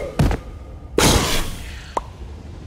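A zombie bursts with a soft puff.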